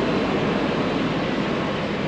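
A backhoe engine rumbles steadily close by.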